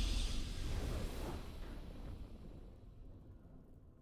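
A triumphant game victory sound swells and then fades away.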